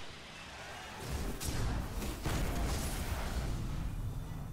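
Gunfire and explosions crackle loudly from a video game.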